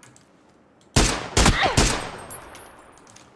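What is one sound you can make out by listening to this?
Rifle shots crack loudly.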